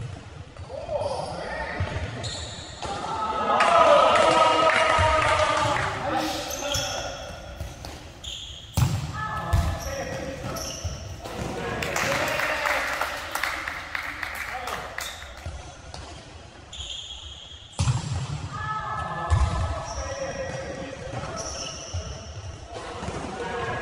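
Sneakers squeak on a hard indoor court.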